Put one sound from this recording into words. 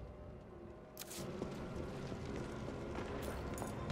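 Footsteps scuff across a floor.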